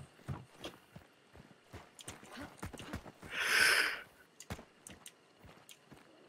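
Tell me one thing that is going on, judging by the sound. Footsteps crunch through dry brush and leaves.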